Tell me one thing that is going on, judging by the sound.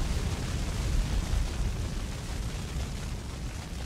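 A fire crackles and roars close by.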